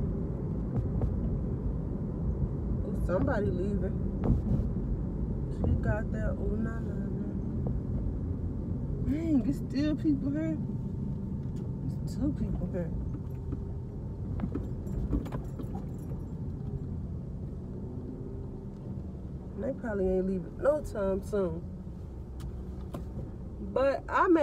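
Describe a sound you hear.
A car engine hums low and steady, with road rumble.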